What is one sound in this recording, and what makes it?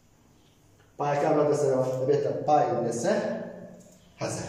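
A man speaks animatedly close by, explaining.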